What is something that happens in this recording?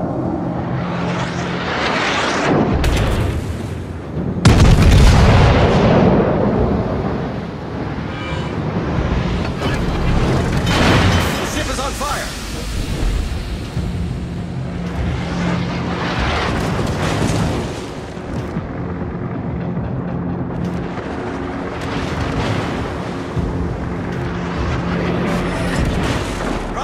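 A ship's engine hums low and steady.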